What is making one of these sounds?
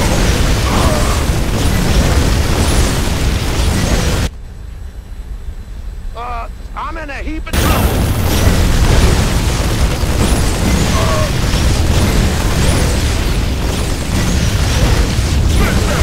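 Guns fire in rapid bursts.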